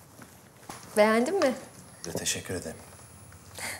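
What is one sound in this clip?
A young woman speaks with emotion nearby.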